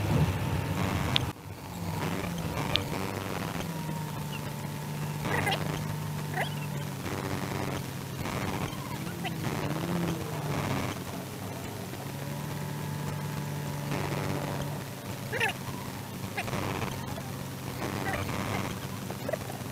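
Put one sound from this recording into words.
A car engine hums and idles steadily, heard from inside the car.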